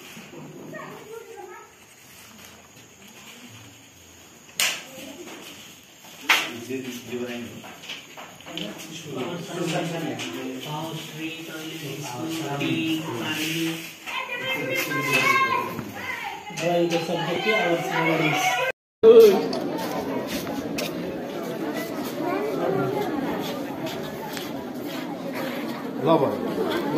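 A marker scratches across paper.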